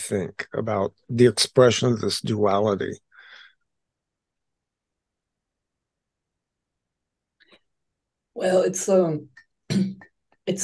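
A woman speaks calmly over an online call, in bursts with pauses.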